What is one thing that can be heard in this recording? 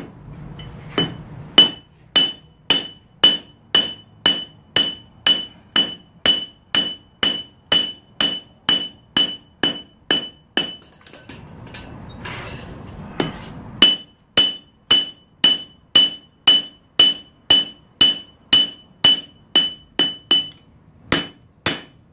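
A hammer strikes hot metal on an anvil in a steady, ringing rhythm.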